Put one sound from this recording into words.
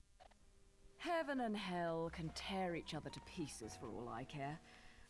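A woman speaks calmly and coolly, close by.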